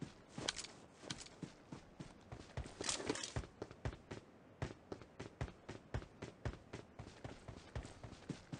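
Quick footsteps thud steadily on grass and pavement.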